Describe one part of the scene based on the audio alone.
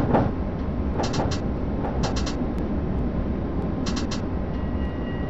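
Tram wheels click over rail joints in quick bursts of three.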